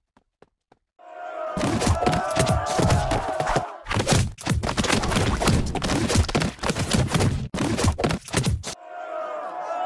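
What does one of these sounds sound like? Cartoon battle sounds clatter and splat rapidly.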